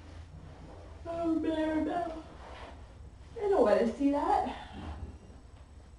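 A woman speaks with animation close by, heard through a webcam microphone.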